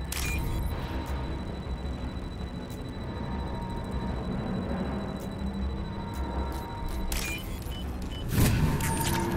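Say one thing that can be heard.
Short electronic beeps chime.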